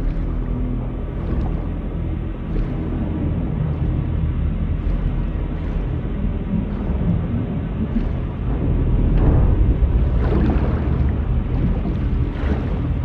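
A train rumbles low and steady.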